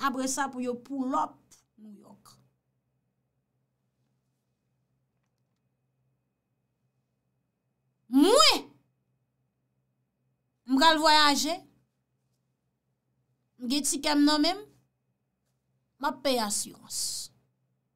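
A young woman speaks close to a microphone in short, expressive phrases with pauses between them.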